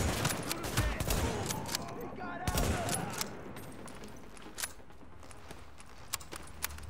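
Rifle shots crack out at intervals.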